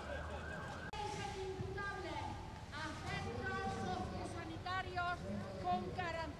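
A woman speaks through a microphone and loudspeaker.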